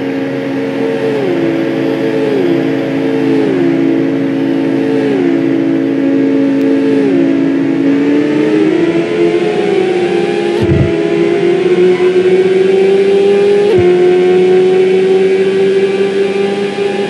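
A racing car engine whines loudly, its pitch stepping down with each gear change and then climbing steadily.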